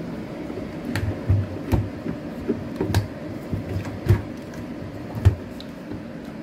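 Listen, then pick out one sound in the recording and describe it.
Metal knocks and clanks as a washing machine drum is handled.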